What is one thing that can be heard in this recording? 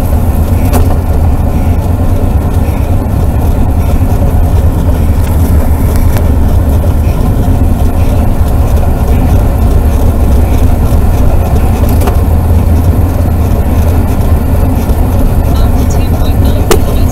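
Wind roars loudly past a fast-moving vehicle.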